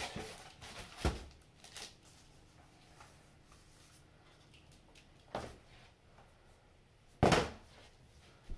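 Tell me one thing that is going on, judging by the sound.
Foam packing pieces knock softly against a cardboard box.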